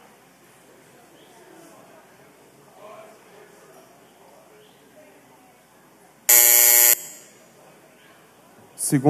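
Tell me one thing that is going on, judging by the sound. Men murmur and chat quietly in a large room.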